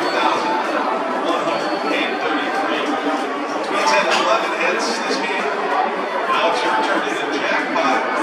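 Men talk and call out nearby.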